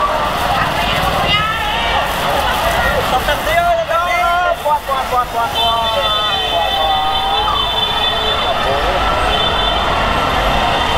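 Motorbike engines rumble past.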